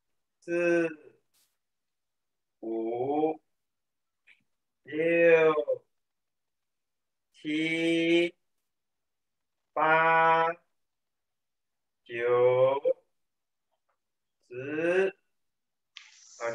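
A young man sings short drawn-out phrases close by, with pauses between them.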